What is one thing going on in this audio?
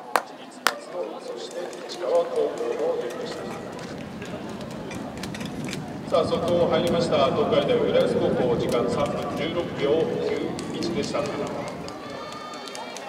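A crowd of young people chatters and calls out nearby.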